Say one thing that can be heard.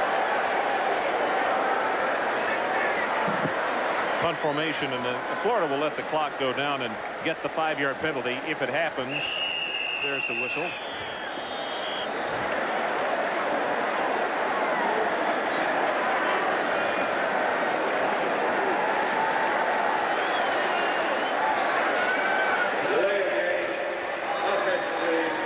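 A large crowd roars throughout a stadium.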